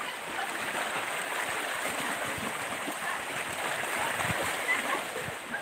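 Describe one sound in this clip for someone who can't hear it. A child wades and splashes through shallow water.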